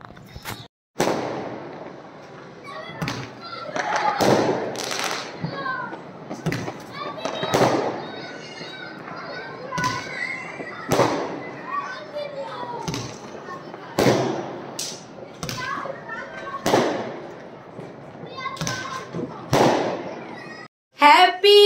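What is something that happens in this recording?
Fireworks burst with sharp bangs and crackles.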